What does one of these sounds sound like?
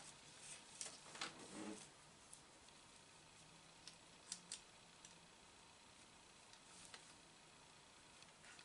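Small plastic parts click and tap softly as hands handle them.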